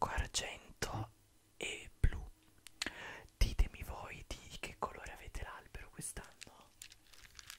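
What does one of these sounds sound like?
A young man speaks softly and closely into a microphone.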